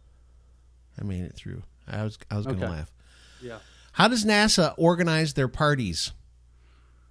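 A second man talks with animation into a microphone.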